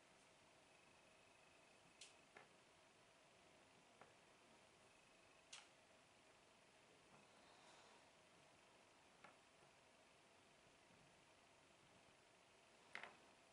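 Puzzle pieces click softly on a tabletop.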